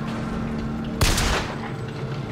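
A pistol fires a single loud shot.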